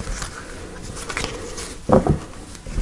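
A deck of cards is shuffled with quick riffling.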